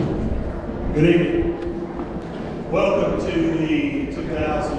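A man speaks into a microphone, heard through loudspeakers in a large echoing hall.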